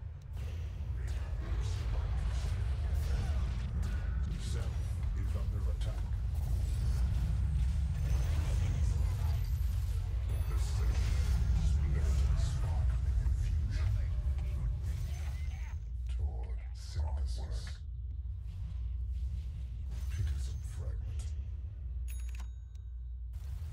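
Spell effects and weapon blows clash and crackle in a fast fight.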